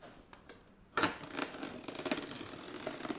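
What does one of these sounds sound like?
A knife cuts through tape on a cardboard box.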